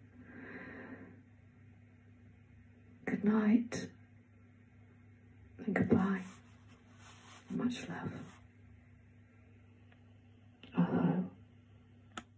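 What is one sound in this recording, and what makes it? An older woman sings in short phrases close into a microphone.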